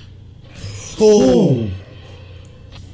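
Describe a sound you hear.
A young man exclaims in surprise close by.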